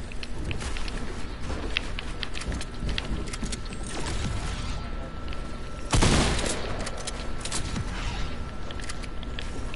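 Wooden building pieces knock and clatter into place in quick succession.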